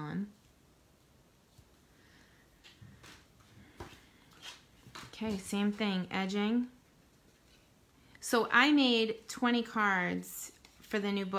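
Paper rustles and slides as hands handle cards.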